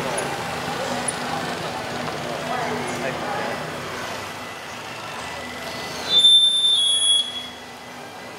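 A crowd murmurs and chatters in a busy street outdoors.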